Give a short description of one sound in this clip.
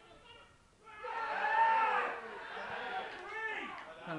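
Men shout excitedly.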